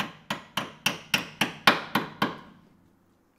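A hammer strikes metal in quick, sharp blows.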